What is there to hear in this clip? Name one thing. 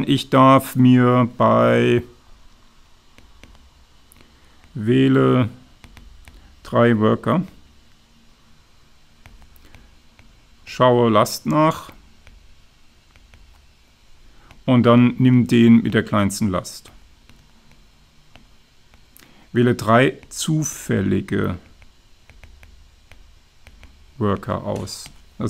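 A man lectures calmly into a microphone, in short bursts with pauses.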